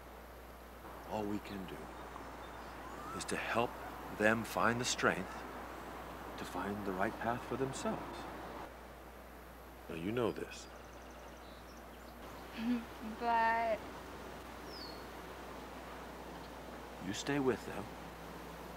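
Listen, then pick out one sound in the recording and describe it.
A middle-aged man speaks calmly and closely.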